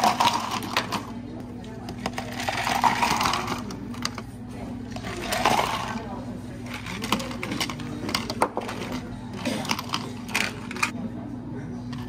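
Ice cubes tumble and clatter into plastic cups.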